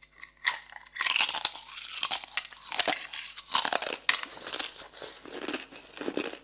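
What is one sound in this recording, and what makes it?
A young woman chews ice with wet crunching close to a microphone.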